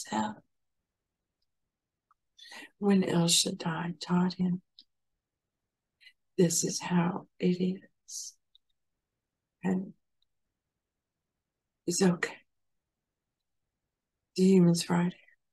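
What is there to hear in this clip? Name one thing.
An older woman speaks calmly and slowly, in pauses, close to a microphone.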